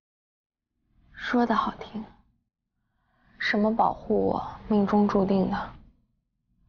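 A young woman speaks softly, close by.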